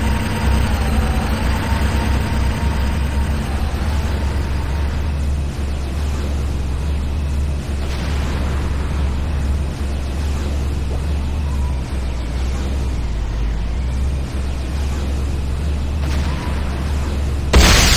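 An electric shield crackles and buzzes.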